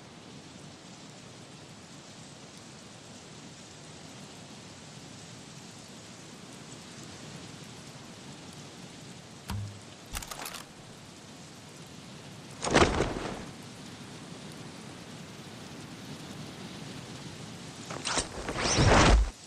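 Wind rushes steadily past during a fall through the air.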